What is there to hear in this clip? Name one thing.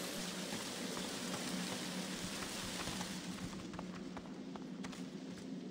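Footsteps tread on stone ground.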